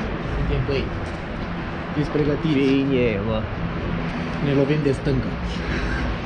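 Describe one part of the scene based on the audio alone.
A young man talks animatedly, close to the microphone.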